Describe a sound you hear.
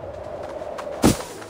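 A heavy thud sounds as someone lands.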